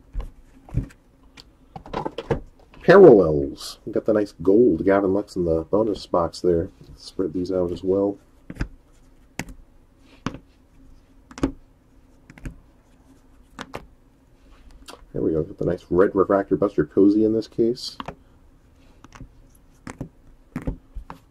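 Plastic card cases click and tap against each other as they are handled.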